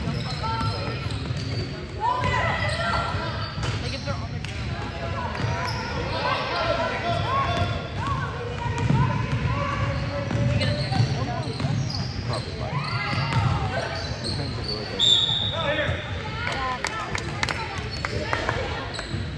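Young women call out to each other across an echoing gym.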